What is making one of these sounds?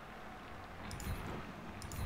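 Dice clatter as they roll.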